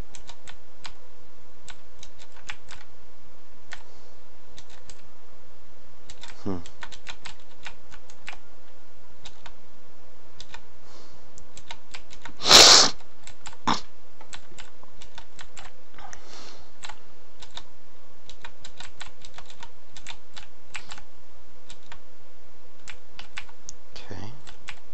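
Quick soft footsteps tick steadily in a video game.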